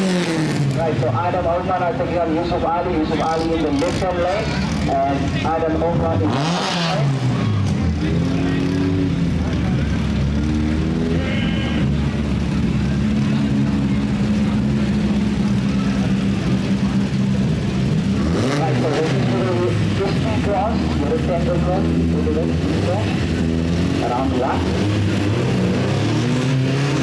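A loud race car engine roars and revs hard nearby.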